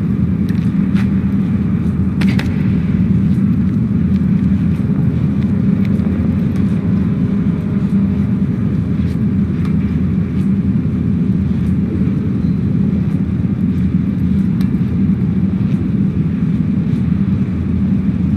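A small child's footsteps patter along a floor.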